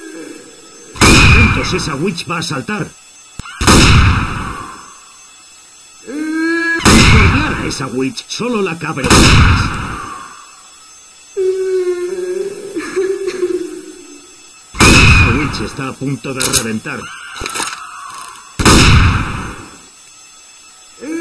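A sniper rifle fires loud single shots, each followed by a ringing echo.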